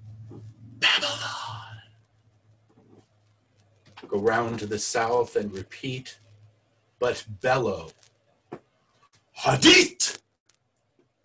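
A man speaks animatedly through an online call, at times bellowing.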